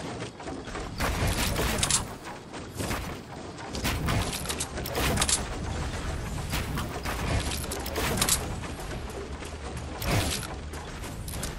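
Game building pieces snap into place with sharp, quick clunks.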